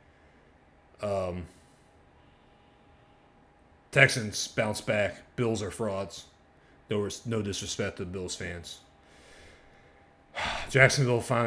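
A young man talks with animation close to a microphone, pausing now and then.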